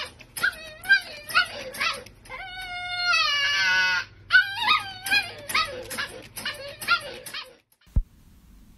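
A dog howls and whines loudly, up close.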